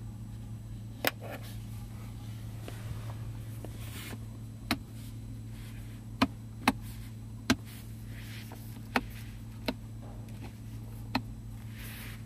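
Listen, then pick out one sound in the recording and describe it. Buttons click sharply as a finger presses them.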